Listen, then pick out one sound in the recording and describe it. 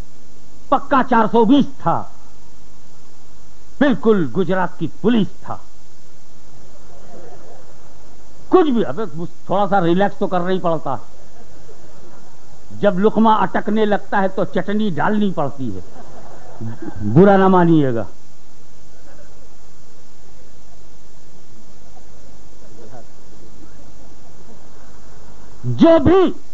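An elderly man speaks with fervour into a microphone, heard through a loudspeaker, in bursts with long pauses.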